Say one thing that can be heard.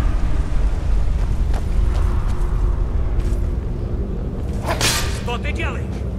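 Footsteps thud on stone and wooden stairs.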